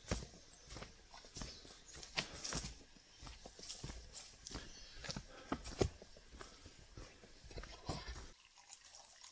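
Footsteps crunch on a forest trail.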